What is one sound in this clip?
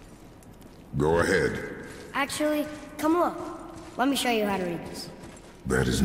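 A young woman talks calmly into a close microphone.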